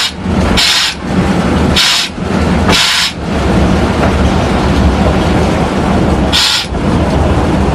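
A short hiss of air sounds from the brake.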